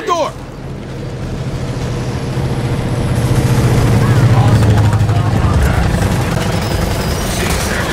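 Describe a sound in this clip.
A large propeller plane drones overhead, rising and then fading.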